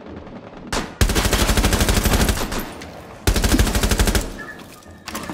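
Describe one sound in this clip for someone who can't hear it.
A carbine fires in automatic bursts.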